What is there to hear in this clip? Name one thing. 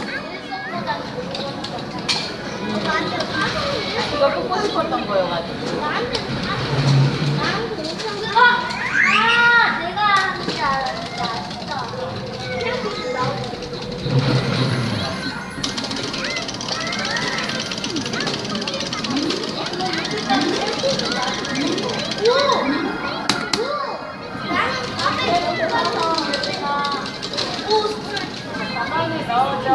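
Upbeat arcade game music plays from a loudspeaker.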